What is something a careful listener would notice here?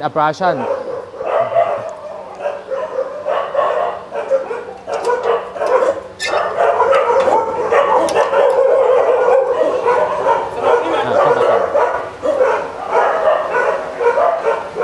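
Several women chat nearby.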